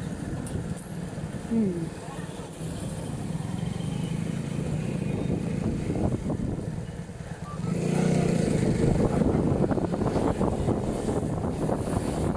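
A motorcycle engine hums steadily while riding along a street.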